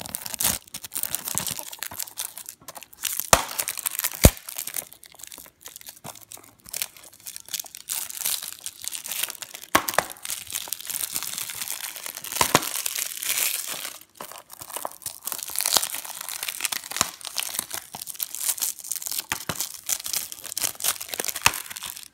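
Plastic wrapping crinkles and rustles under fingers.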